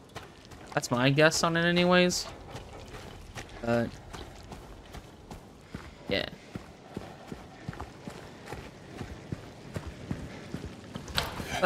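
Footsteps walk steadily over gravel and concrete.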